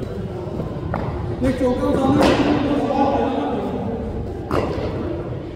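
A cricket bat cracks sharply against a ball.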